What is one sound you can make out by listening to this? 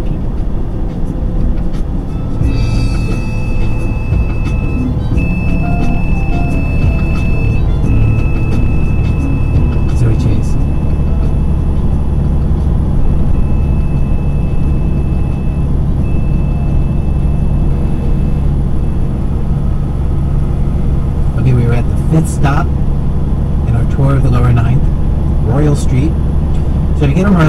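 A vehicle's engine hums steadily as it drives at speed.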